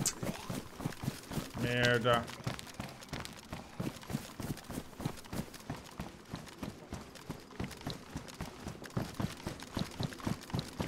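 Footsteps pad steadily over grass and gravel.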